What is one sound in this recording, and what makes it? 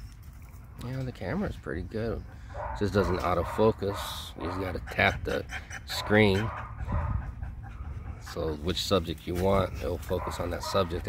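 Dogs whine and yelp in high, wavering tones.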